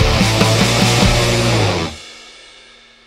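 An electric guitar is strummed loudly.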